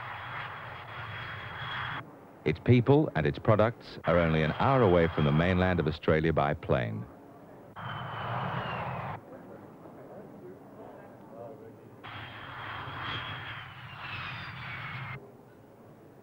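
A jet airliner roars as it comes in to land.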